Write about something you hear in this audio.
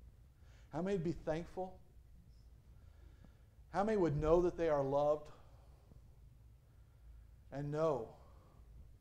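A middle-aged man preaches with animation through a microphone in a reverberant hall, in short emphatic phrases.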